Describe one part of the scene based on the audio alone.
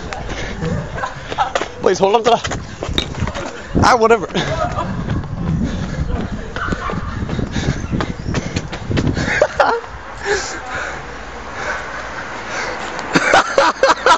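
Footsteps scuff along a pavement outdoors.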